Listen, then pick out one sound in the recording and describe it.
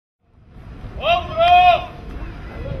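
A man shouts a loud command outdoors.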